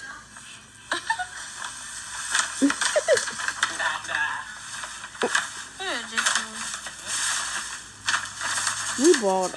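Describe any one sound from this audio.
A paper gift bag rustles and crinkles.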